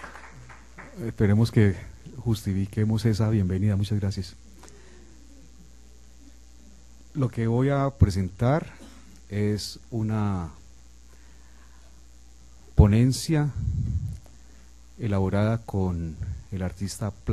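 A man speaks calmly through a microphone, with pauses between phrases.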